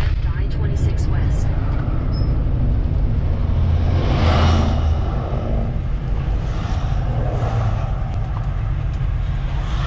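Oncoming vehicles whoosh past.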